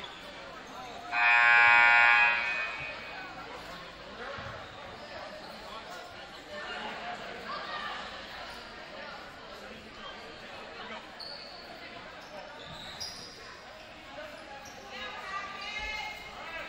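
A crowd murmurs and chatters in the background.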